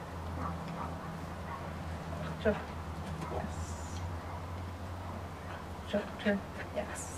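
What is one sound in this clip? A woman talks encouragingly to a dog nearby.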